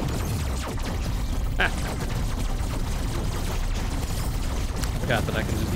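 Video game laser shots zap and blast.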